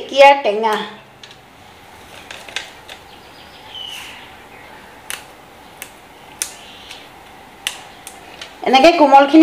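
Fresh leafy stems snap with sharp little cracks.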